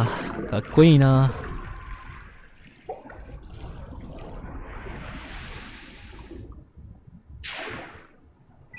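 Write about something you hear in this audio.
Water swirls and rushes around struggling bodies.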